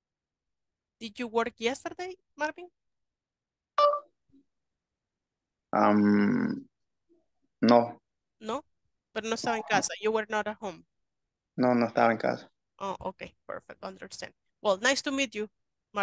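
A young woman speaks calmly through an online call.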